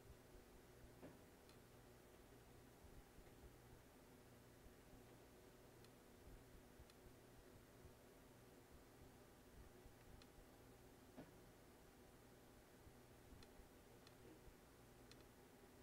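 Keyboard keys click and tap under fingers.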